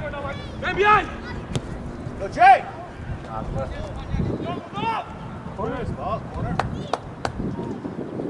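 Young women shout to each other across an open field, heard from a distance.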